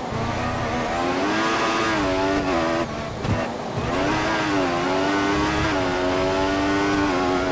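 A racing car engine screams at high revs, rising through the gears.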